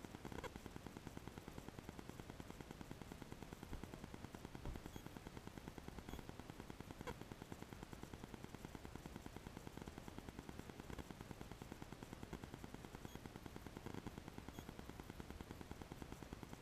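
A car engine idles steadily, heard from inside the car.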